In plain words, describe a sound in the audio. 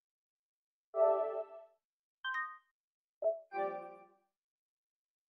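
Soft pitched menu chimes sound a few times.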